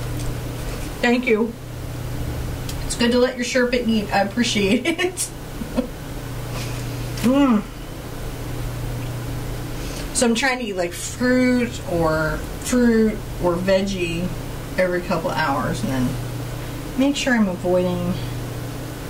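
A middle-aged woman talks calmly and close to a microphone.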